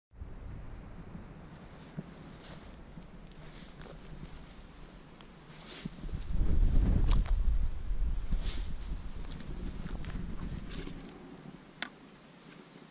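Footsteps crunch softly on twigs and moss.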